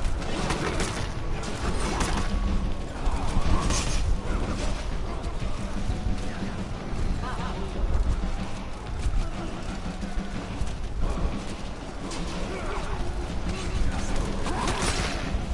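Swords clash and clang in close combat.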